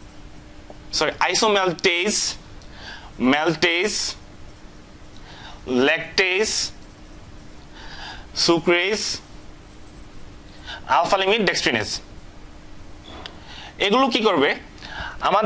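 A man speaks calmly in short bursts, close by.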